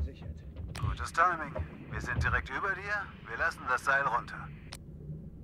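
A man speaks calmly over a crackly radio.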